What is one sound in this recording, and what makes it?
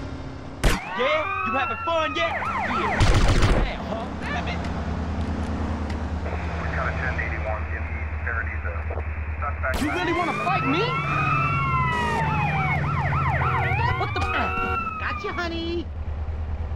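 A police siren wails up and down.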